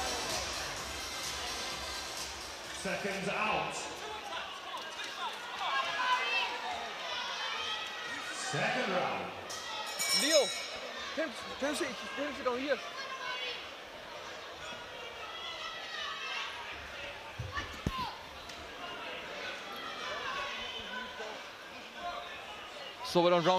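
A crowd chatters and shouts in a large echoing hall.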